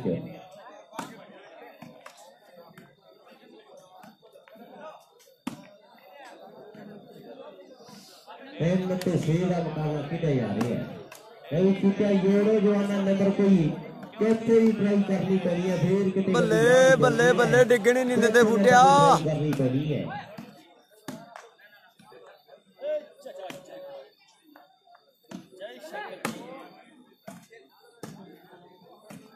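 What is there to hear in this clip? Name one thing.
A volleyball is hit with hands, with sharp slaps.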